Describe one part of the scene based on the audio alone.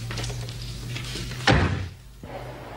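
A heavy wooden door shuts with a thud.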